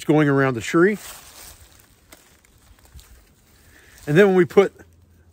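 A rope rustles as it is pulled and tied.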